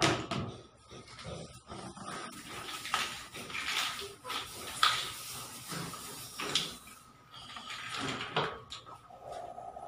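Metal pots and dishes clink and clatter as they are handled.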